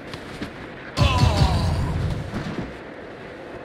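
A knife strikes with a heavy thud.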